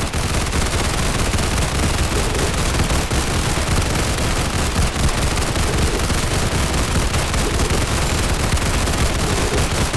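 Fiery explosions burst and crackle in a game.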